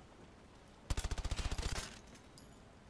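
A gun fires a short, rapid burst.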